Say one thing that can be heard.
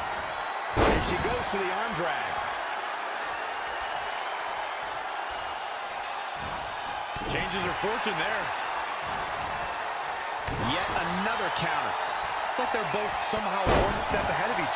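Bodies slam hard onto a wrestling ring mat with loud thuds.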